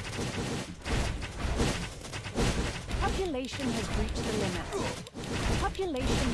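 Fire blasts burst and crackle.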